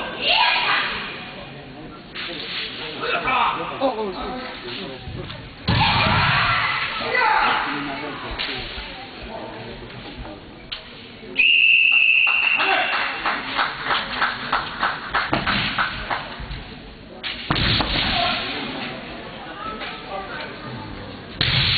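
Kendo fighters shout loudly in a large echoing hall.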